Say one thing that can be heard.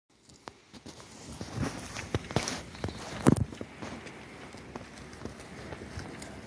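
Goats tear and munch grass close by.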